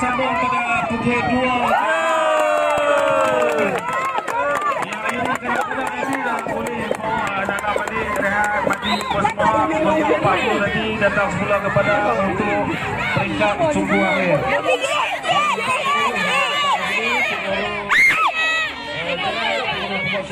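A crowd of women and children shouts and cheers loudly outdoors.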